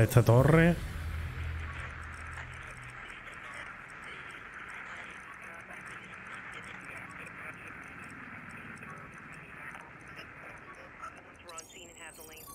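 A radio signal hisses with steady static while it is tuned.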